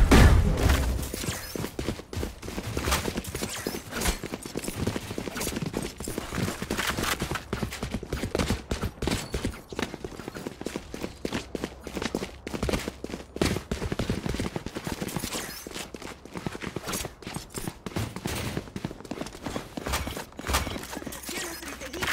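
Footsteps thud quickly on hard ground as a game character runs.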